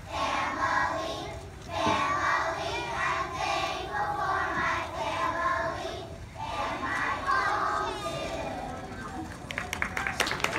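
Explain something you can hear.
A large choir of children sings together outdoors.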